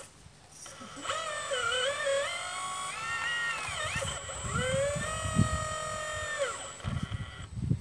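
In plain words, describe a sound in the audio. A small electric motor whines, rising and falling in pitch.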